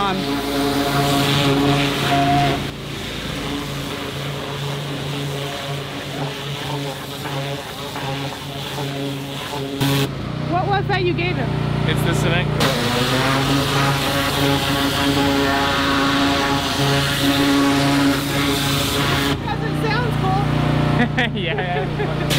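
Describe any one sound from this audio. A pressure washer engine drones steadily nearby.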